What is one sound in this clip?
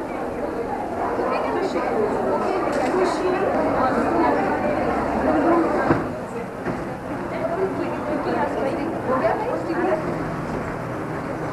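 Several women chatter and talk over one another nearby.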